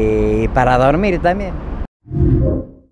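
A middle-aged man speaks with animation, close to a microphone.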